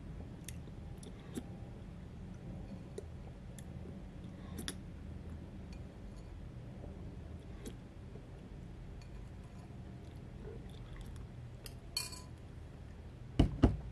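A man chews and crunches food close by.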